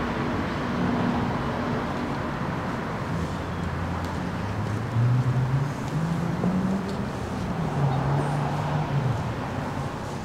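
An electric keyboard plays low sustained notes outdoors.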